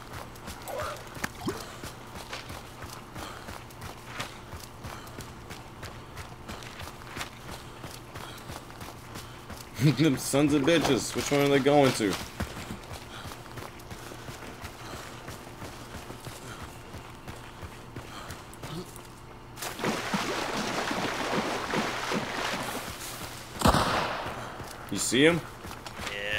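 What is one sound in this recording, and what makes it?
Footsteps rustle through dry grass and leaves.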